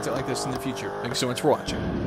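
Tyres squeal on tarmac during a burnout.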